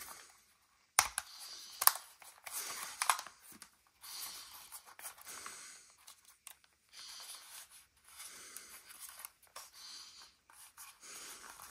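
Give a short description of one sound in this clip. Plastic parts click as they are folded open.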